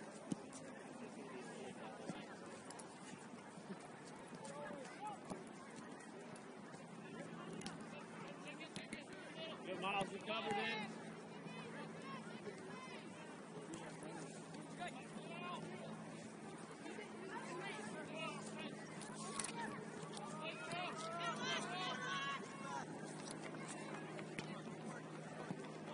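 Distant men and women shout and call out across an open field.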